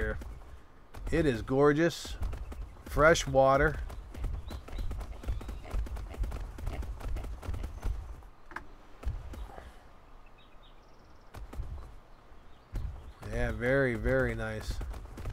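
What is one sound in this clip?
A large animal's heavy footsteps thud on the ground.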